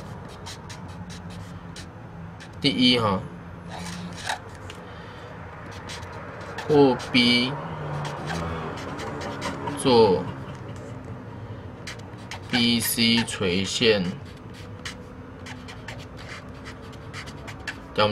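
A marker squeaks and taps on paper.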